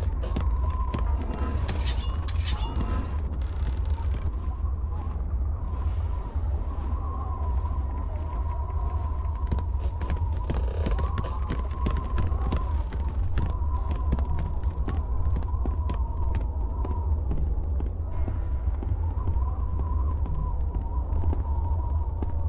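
Footsteps run on stone.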